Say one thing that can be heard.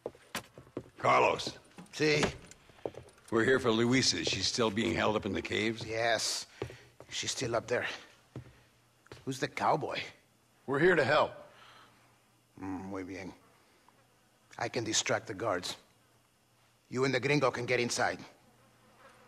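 A middle-aged man speaks gruffly, close by.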